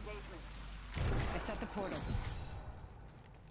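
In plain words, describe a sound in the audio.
A portal opens with a loud whooshing burst.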